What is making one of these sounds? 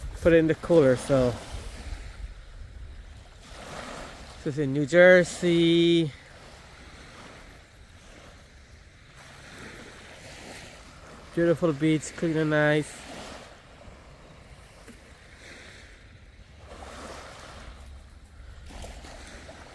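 Small waves lap gently at the shore.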